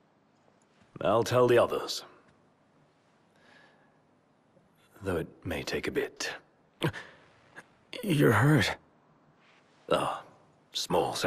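A man speaks calmly and evenly.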